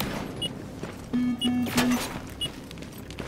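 Gunshots fire in quick bursts close by.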